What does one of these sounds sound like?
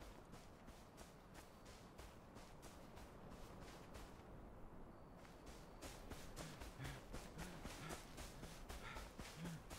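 Footsteps patter quickly on grass and soft ground.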